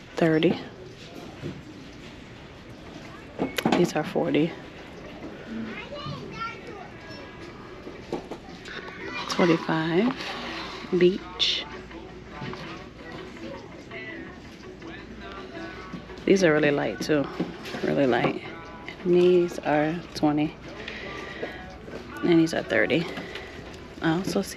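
Sandals scrape softly as a hand lifts and moves them.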